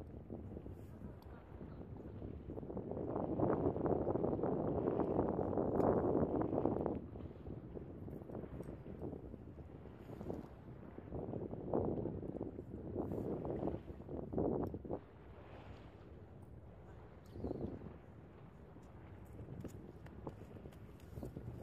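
Wind blows across open water outdoors.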